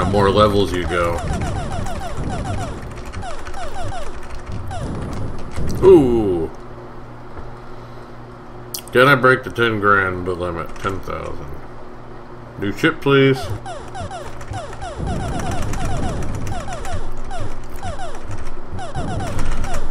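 Shots from a ship in an arcade game fire in quick bursts of beeps.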